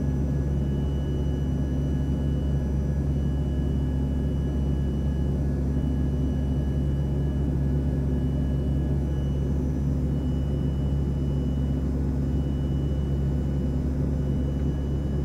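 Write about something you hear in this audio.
A jet engine roars steadily with a low drone and a high whine, heard from inside a cabin.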